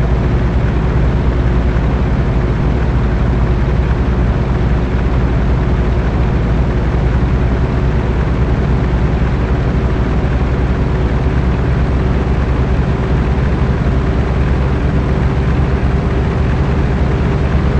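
A truck engine rumbles steadily at a low pitch.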